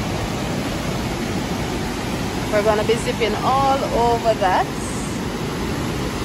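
A waterfall rushes steadily outdoors.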